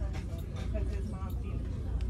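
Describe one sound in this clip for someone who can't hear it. A shopper walks past with soft footsteps.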